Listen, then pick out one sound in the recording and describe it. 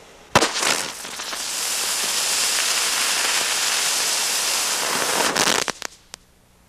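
A firework fountain hisses and sprays sparks loudly.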